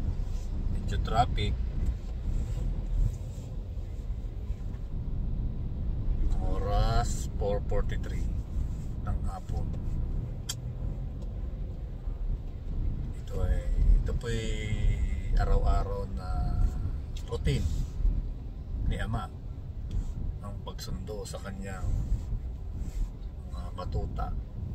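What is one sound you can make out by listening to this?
A car engine rumbles low and steadily inside the car.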